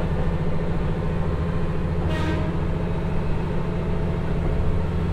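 Train wheels clatter rhythmically on the rails.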